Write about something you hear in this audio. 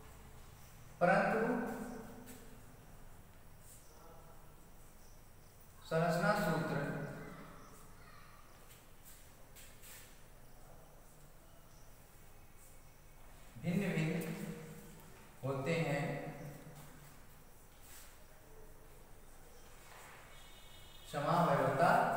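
A man speaks out in short, loud bursts, close by in a room with some echo.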